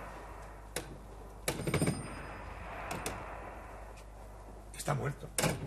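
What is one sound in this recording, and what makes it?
A man talks on a phone.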